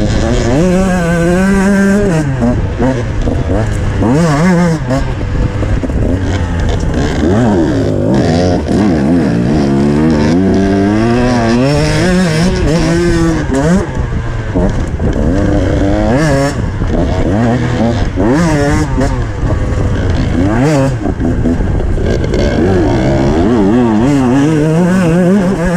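Another dirt bike engine buzzes a short way ahead.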